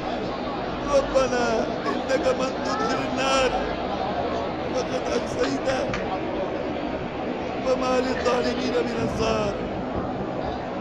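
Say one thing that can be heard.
A man chants a prayer in a long, wavering voice.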